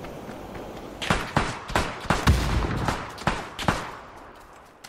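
A rifle fires several loud shots in quick succession.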